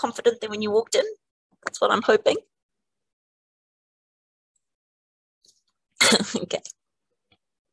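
A woman speaks calmly through a microphone, in short bursts with pauses.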